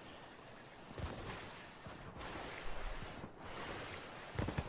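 A game character splashes through shallow water.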